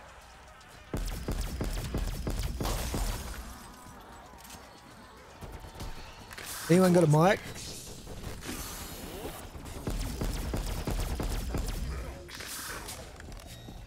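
A ray gun fires with buzzing, crackling bursts.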